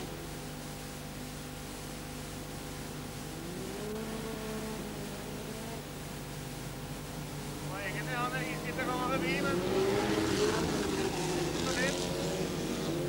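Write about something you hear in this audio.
Small car engines drone and rev, growing louder.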